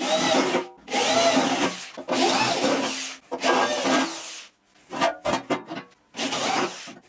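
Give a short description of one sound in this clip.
A power drill whirs in short bursts, speeding up and slowing down as it bores into sheet metal.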